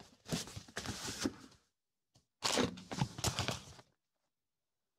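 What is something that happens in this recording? Washi tape crinkles as hands handle it.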